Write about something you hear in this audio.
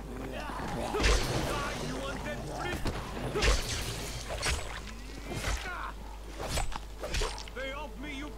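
Blades strike flesh with heavy wet thuds.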